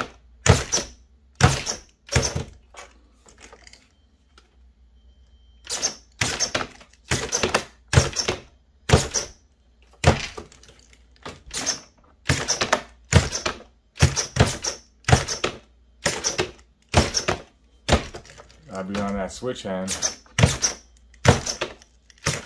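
A model car's wheels bang down on a hard floor again and again.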